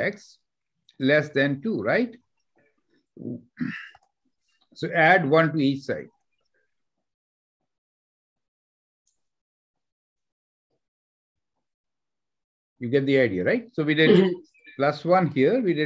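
A man explains calmly over an online call, with pauses.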